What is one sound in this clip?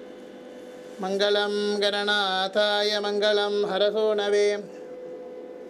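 A man chants in a sung voice.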